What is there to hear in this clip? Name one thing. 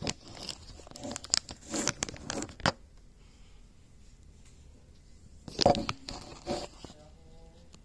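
Fabric rustles and bumps close by as clothing brushes past.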